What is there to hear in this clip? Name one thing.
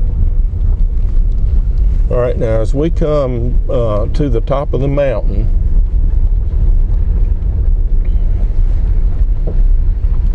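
A car engine rumbles low and steady while driving.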